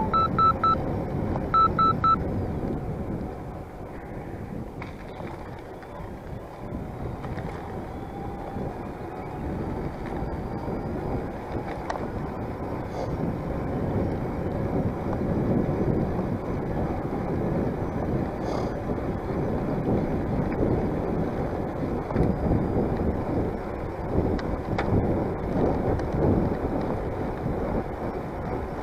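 Bicycle tyres hum on a paved path.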